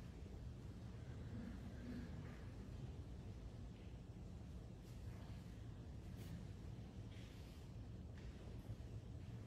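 Metal vessels clink softly as they are handled.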